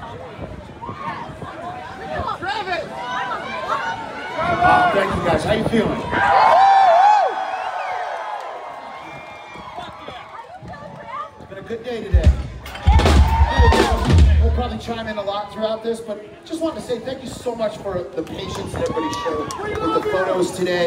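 A band plays electric guitars and drums loudly outdoors.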